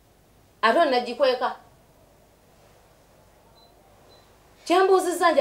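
A woman speaks calmly nearby in short phrases.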